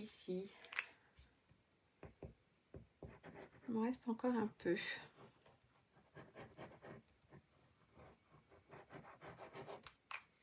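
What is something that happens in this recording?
A glue stick rubs across paper.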